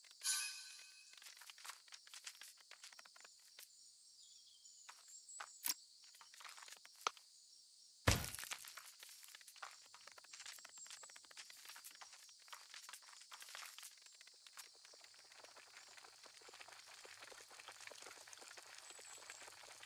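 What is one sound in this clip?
Tiny insect footsteps patter and crackle on dry ground.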